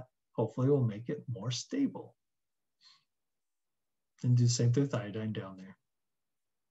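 A middle-aged man speaks calmly into a microphone, as if over an online call.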